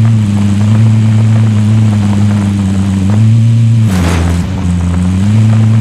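A vehicle engine drones steadily as it drives over rough ground.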